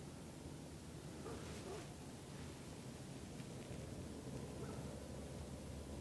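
A deer steps through dry leaves, rustling softly.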